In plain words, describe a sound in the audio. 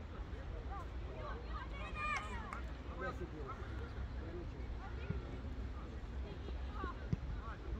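Young players shout to each other in the distance across an open field.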